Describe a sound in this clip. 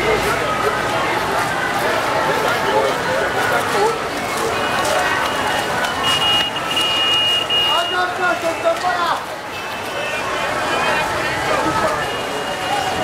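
Many men and women chatter and call out all around outdoors.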